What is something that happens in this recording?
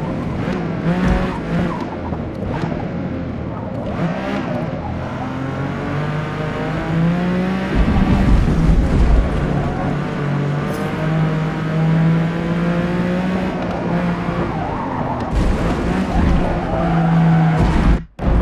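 Tyres screech through tight corners.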